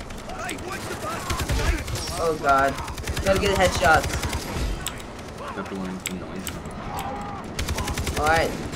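Rapid rifle shots ring out in bursts.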